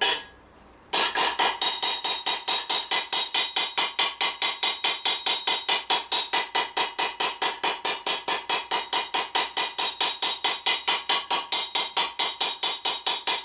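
A hammer rapidly taps on sheet metal against an anvil, ringing brightly.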